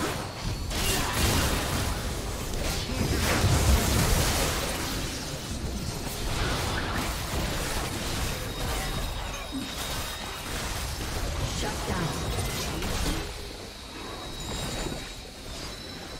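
Magic blasts and hits crackle and boom in a fast fight.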